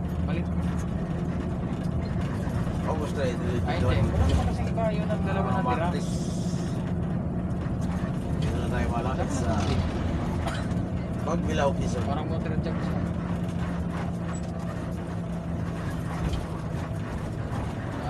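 A bus engine drones steadily from inside the bus as it drives.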